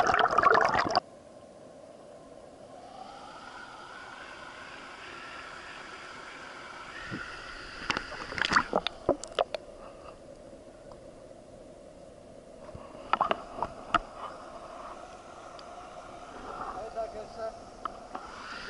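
A stream flows over rocks, heard muffled through water.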